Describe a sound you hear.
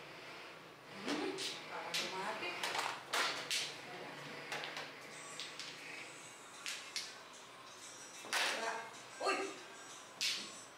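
Mahjong tiles clack sharply as they are placed and discarded on a table.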